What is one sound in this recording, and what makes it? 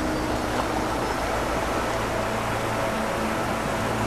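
Paddles splash in the water.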